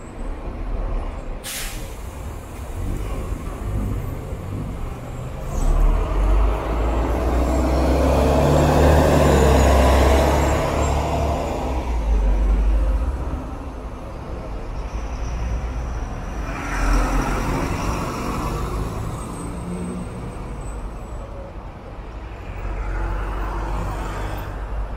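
Traffic hums steadily on a busy street outdoors.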